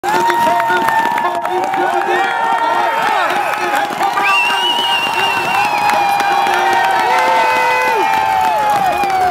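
A large outdoor crowd cheers and shouts loudly.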